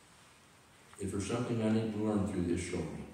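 An elderly man speaks with emphasis.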